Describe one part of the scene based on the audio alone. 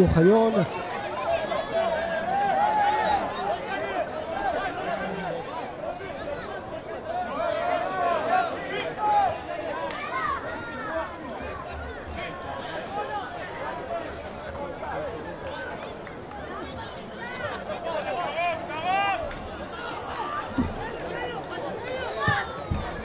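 Young players shout and call to each other across an open, echoing field.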